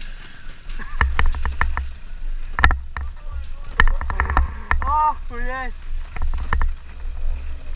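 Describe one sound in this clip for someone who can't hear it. A motorbike rattles and thumps over a bumpy dirt track.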